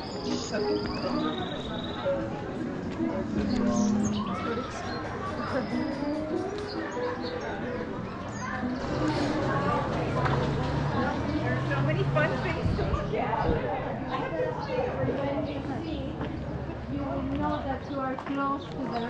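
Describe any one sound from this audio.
Footsteps scuff along the pavement.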